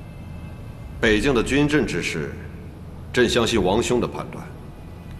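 A man speaks in a firm, measured voice.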